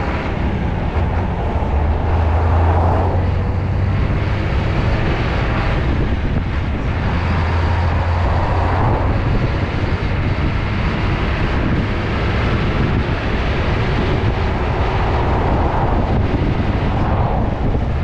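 Wind rushes past a moving vehicle.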